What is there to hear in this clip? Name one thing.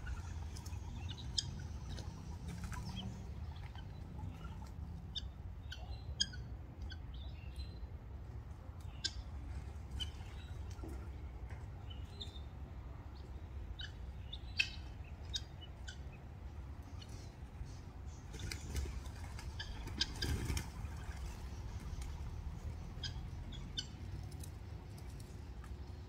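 Birds' wings flap and flutter as they take off.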